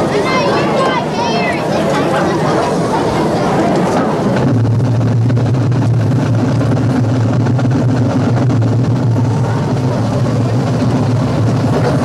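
A marching band plays brass instruments loudly outdoors.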